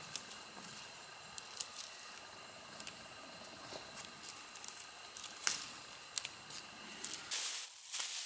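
A knife cuts through dry grass stalks with sharp snaps.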